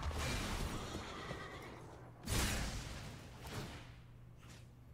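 Whooshing game sound effects swell and fade.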